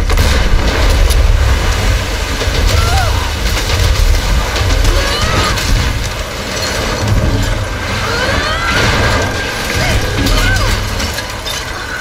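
Rushing water roars loudly.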